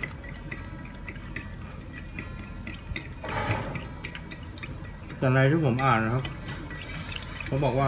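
Ice clinks as a straw stirs a glass.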